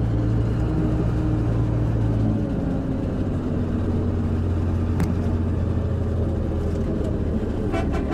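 A boat engine hums low and steady.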